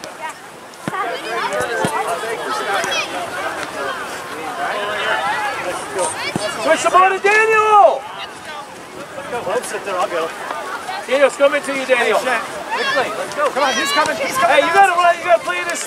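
Adult spectators shout encouragement outdoors from a distance.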